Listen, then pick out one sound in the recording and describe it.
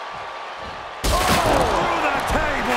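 A heavy body slams down onto a wrestling ring with a loud crash.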